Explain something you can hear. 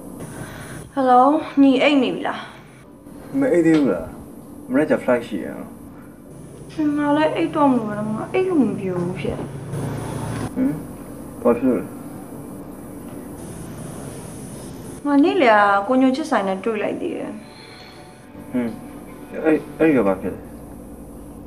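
A young woman speaks anxiously into a phone, close by.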